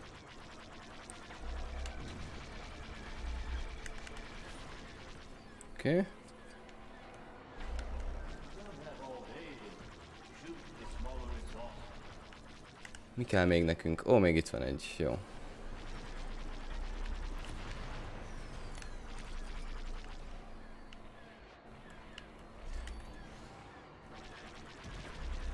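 Laser blasts zap and crackle.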